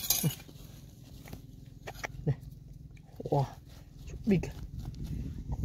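A hand scoops and rustles loose pebbles and dirt.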